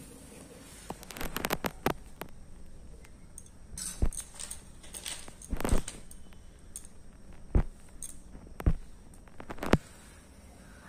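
Small items knock and clatter as a hand sets them down close by.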